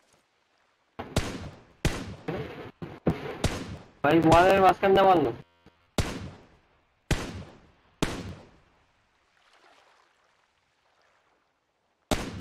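Sniper rifle shots crack one at a time, each followed by a ringing echo.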